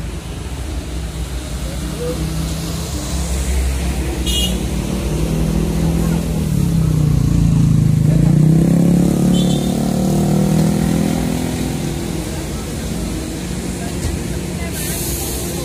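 Traffic hums on a road outdoors.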